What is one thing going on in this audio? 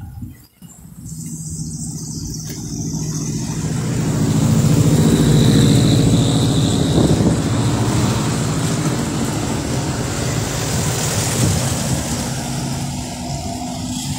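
A car engine rumbles close by as it pulls past.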